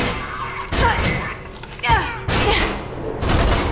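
Bullets strike and ricochet off hard walls with sharp whining pings.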